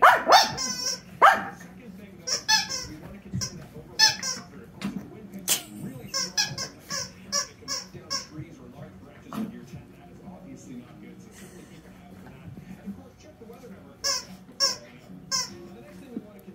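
Small dogs bark and yap in high, sharp bursts.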